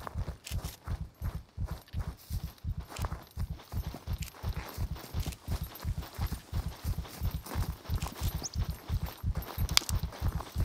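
Footsteps thud steadily on grass and dirt.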